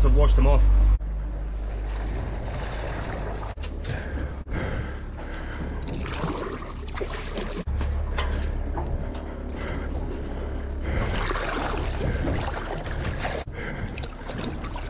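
Water splashes and churns against the side of a boat.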